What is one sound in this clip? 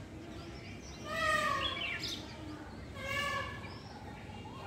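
A peacock calls loudly nearby with sharp, repeated cries.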